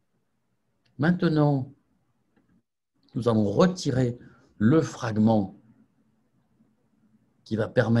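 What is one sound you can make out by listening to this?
An elderly man speaks calmly, heard through an online call.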